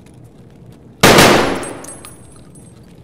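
A rifle fires a single loud shot that echoes and fades.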